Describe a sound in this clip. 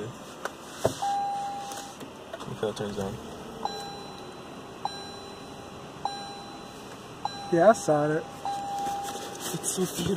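A car's warning chime beeps repeatedly.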